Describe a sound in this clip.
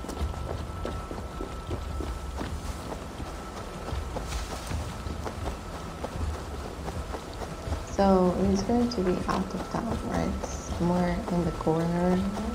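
Footsteps rustle through grass at a quick run.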